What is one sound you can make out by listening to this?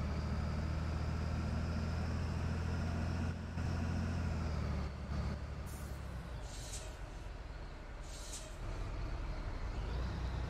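A bus engine hums low and steady, then eases off.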